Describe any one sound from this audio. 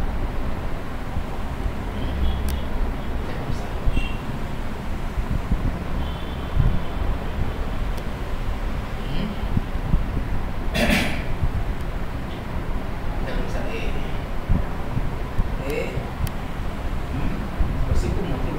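A man speaks calmly, a little way off.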